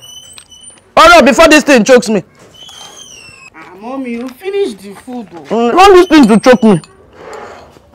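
A middle-aged woman wails and sobs loudly nearby.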